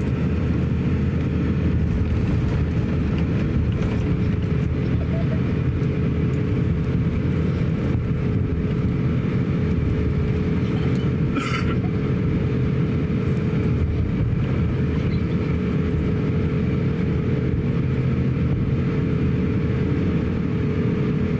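Jet engines hum steadily from inside an aircraft cabin.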